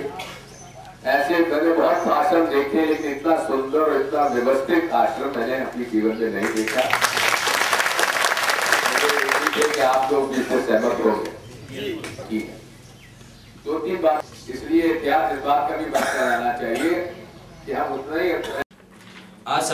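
An elderly man speaks through a microphone and loudspeaker outdoors to a crowd.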